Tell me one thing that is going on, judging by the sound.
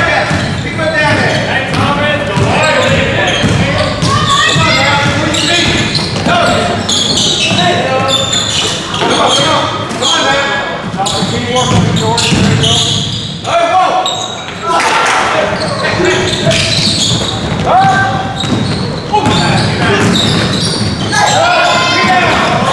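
A crowd of spectators talks and calls out in an echoing gym.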